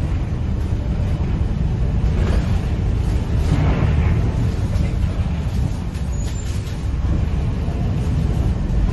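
A bus engine rumbles low and steady, heard from inside the bus.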